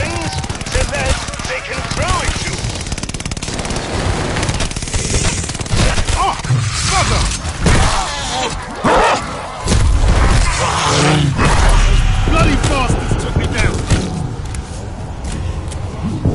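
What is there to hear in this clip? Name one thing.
Zombies snarl and groan close by.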